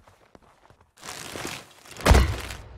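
A rushing whoosh sweeps past.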